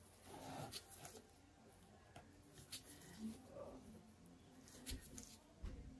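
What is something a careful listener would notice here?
A paper towel rustles as it wipes a canvas.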